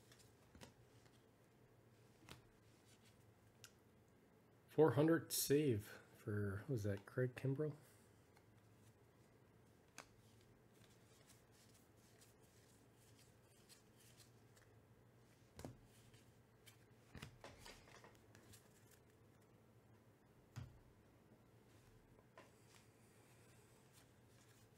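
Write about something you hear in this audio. Trading cards rustle and slide softly as they are shuffled by hand.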